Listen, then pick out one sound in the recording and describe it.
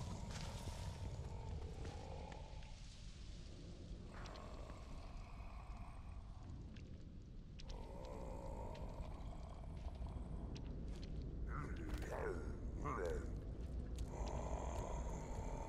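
Soft footsteps scuff slowly on pavement.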